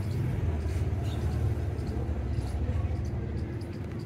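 Tree leaves rustle in the wind.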